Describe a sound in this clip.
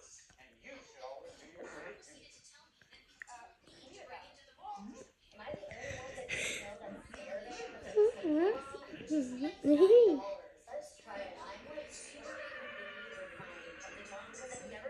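A television plays a cartoon's music and sound effects through its speaker.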